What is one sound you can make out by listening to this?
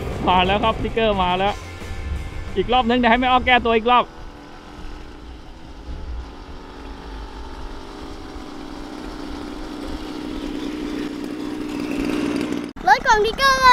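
A small motorbike engine hums as it approaches.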